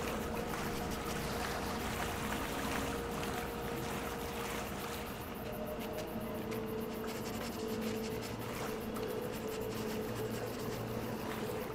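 A fox's paws crunch through snow.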